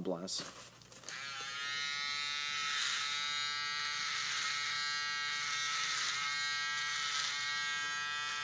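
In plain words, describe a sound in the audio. An electric trimmer buzzes steadily close by.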